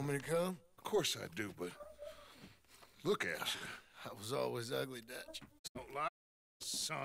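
A weak, elderly man speaks slowly and hoarsely.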